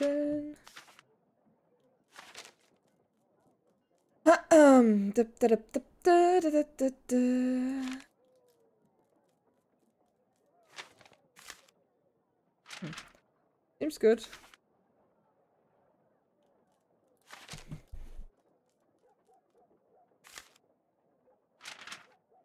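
A young woman talks with animation into a microphone, heard close.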